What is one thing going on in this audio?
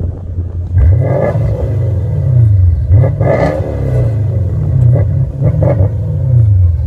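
A car engine revs up and down repeatedly, loud and close.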